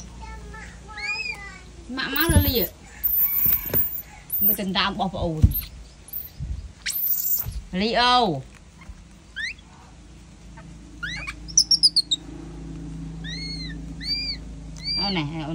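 A baby monkey squeals in short, high-pitched cries.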